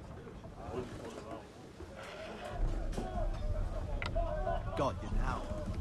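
A wooden game piece clicks onto a board.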